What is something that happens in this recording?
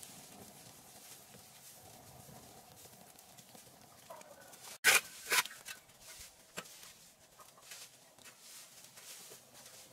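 A shovel scrapes against hard ground.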